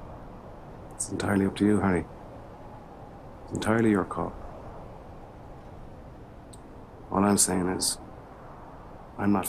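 An older man answers in a low, calm voice, close by.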